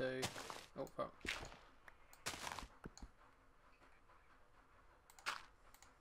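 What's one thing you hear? A shovel digs into dirt with repeated soft crunching thuds.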